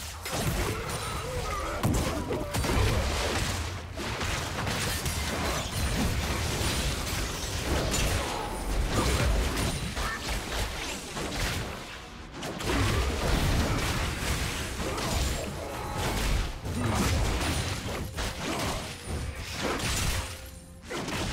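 Spell effects crackle and burst in a busy video game battle.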